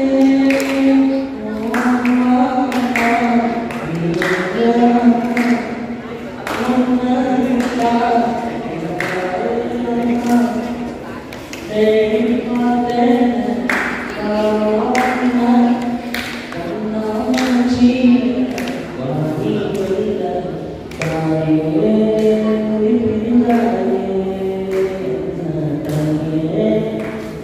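A young man sings slowly through a microphone, holding long notes.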